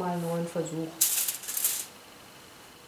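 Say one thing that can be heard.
Paper rustles as a sheet is lifted and handled.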